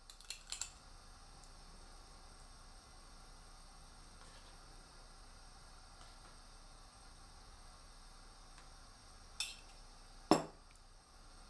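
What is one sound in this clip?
A spoon scrapes and taps against a dish.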